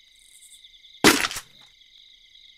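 A short burst of game sound effect plays.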